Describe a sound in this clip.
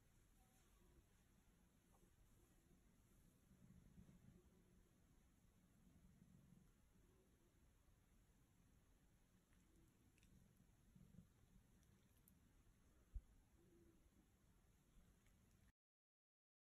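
A cat purrs softly close by.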